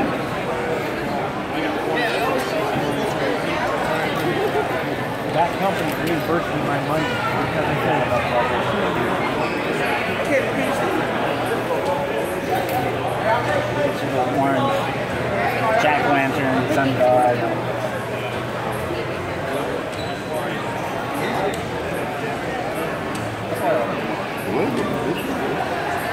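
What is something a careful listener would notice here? A crowd of people chatter all around in a large echoing hall.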